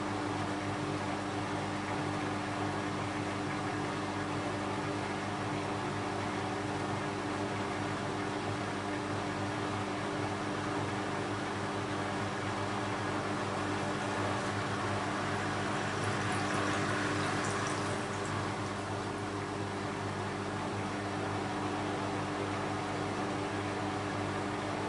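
Water and laundry slosh inside a washing machine drum.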